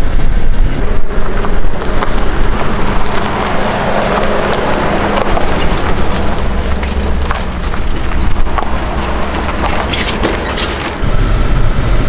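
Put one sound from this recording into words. An SUV engine idles nearby outdoors.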